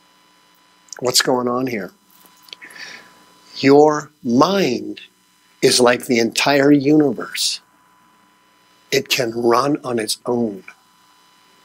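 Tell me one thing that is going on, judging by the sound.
A man speaks with animation, in short bursts with pauses.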